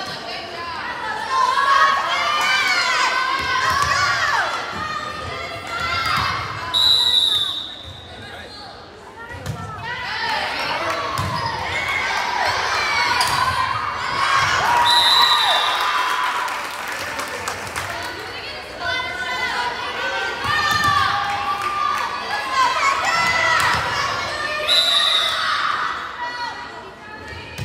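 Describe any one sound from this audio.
Young women shout and call out loudly in a large echoing gym.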